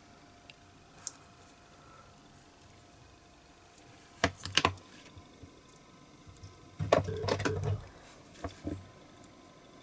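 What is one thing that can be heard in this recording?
Small rubber tyres click and tap together as they are handled.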